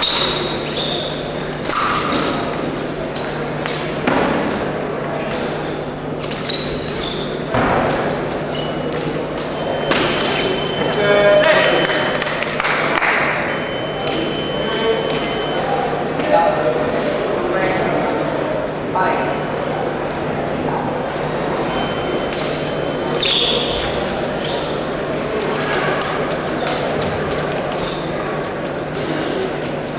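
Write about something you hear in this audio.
Fencing blades clash and click sharply.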